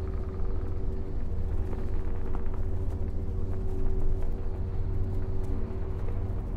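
A deep, steady hum drones from huge hovering machines.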